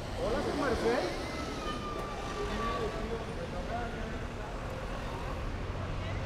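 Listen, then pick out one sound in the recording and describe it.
Traffic hums along a city street.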